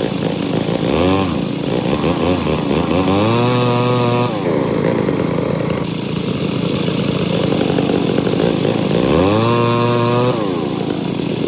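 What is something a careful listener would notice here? A hydraulic log splitter whines, rising in pitch as its ram pushes.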